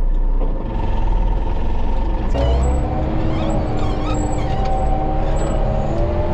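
A diesel engine rumbles loudly close by.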